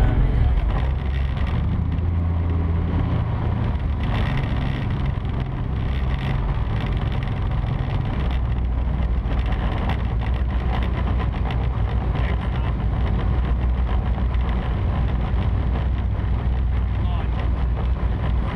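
Water splashes and churns against a boat's hull.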